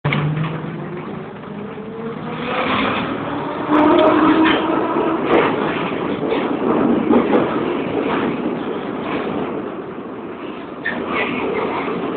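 A subway train rumbles and rattles loudly through an echoing tunnel.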